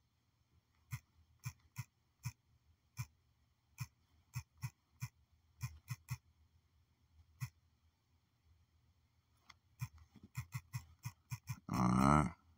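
Phone keyboard keys click rapidly as someone types.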